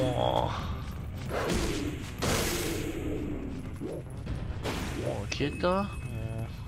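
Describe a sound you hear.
Electronic game sound effects whoosh and chime.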